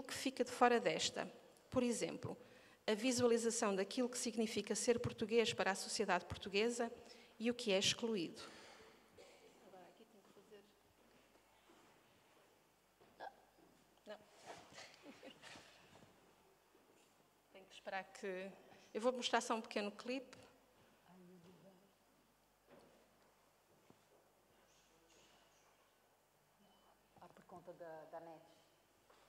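A woman speaks with animation through a microphone in a large room.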